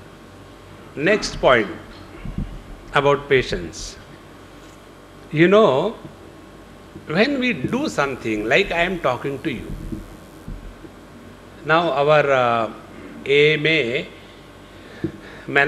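An elderly man speaks calmly into a microphone, in bursts with pauses, heard through a loudspeaker.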